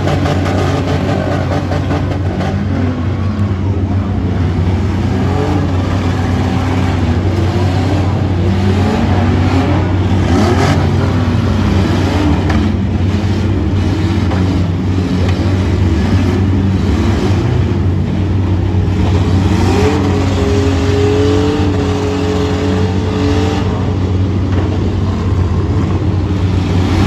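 Engines roar and rev loudly.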